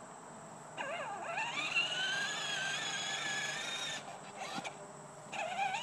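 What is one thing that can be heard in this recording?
Plastic wheels of a ride-on toy roll over asphalt.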